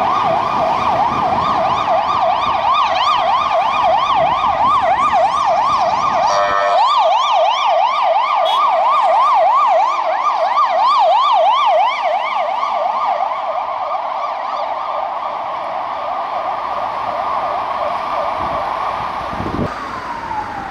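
Police sirens wail rapidly and loudly nearby.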